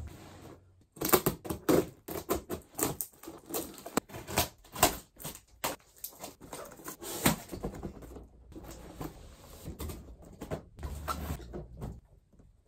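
Cardboard rustles and crinkles as a box is opened.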